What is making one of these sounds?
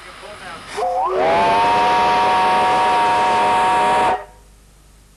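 A steam whistle blows loudly and steadily, then stops abruptly.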